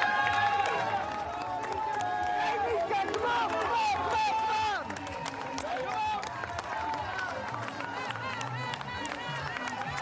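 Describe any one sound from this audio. Spectators clap their hands along the roadside.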